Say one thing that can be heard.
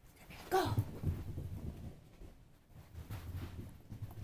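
A small dog's paws patter as it runs off.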